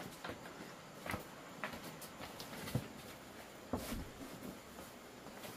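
Items knock and rustle as a bag is handled.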